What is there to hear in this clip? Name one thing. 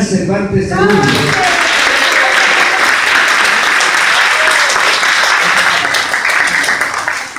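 A crowd of young people claps and cheers loudly.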